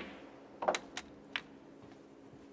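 Snooker balls knock together with sharp clicks.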